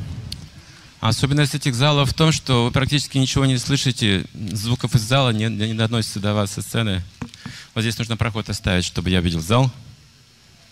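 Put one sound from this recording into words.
An elderly man speaks with animation into a microphone, heard through loudspeakers.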